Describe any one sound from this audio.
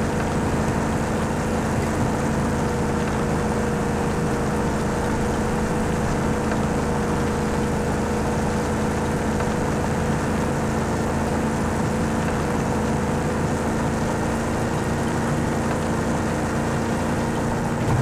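A vehicle engine roars steadily while driving fast.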